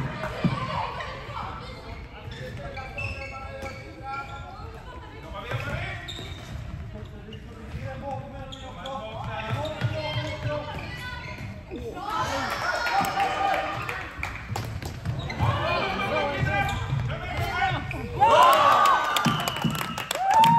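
Plastic sticks clack against a ball and each other.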